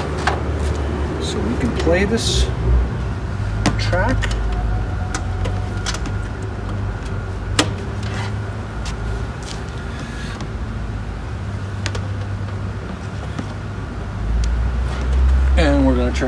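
Cable plugs click and knock against equipment.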